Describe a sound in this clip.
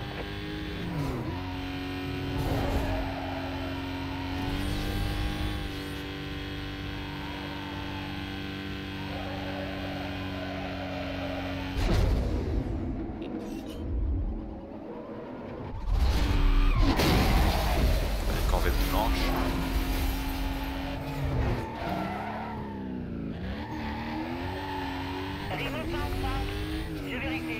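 A race car engine roars at high speed, its pitch rising and falling with gear changes.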